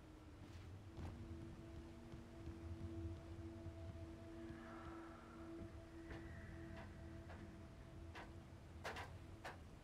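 Footsteps thud on wood.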